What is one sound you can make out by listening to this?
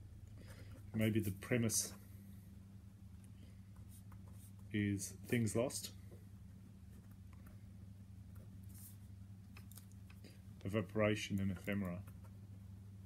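An older man speaks calmly in short bursts, close by.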